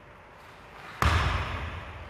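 A foot stamps sharply on a mat, echoing through a large hall.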